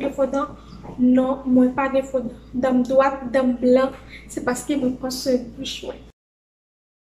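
A young woman talks with animation, close by.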